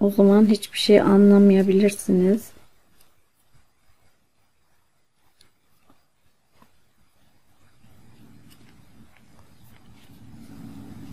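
A crochet hook softly ticks and yarn rustles as stitches are worked.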